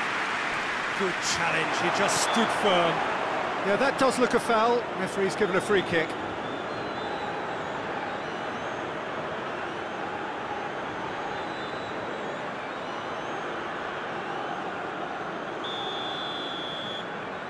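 A large stadium crowd roars and chants steadily.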